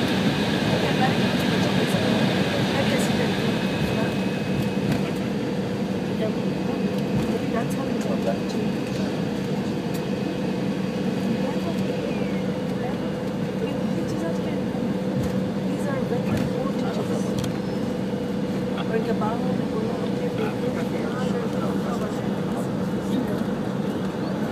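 Jet engines hum and roar steadily, heard from inside an airliner's cabin.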